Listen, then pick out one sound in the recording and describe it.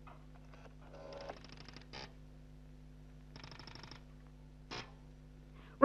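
Telephone switching gear clicks and buzzes.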